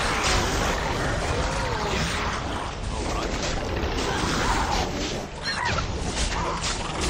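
Creatures screech and growl.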